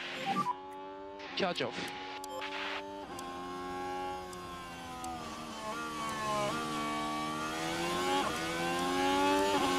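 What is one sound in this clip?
A racing car engine whines at high revs, shifting gears and rising in pitch.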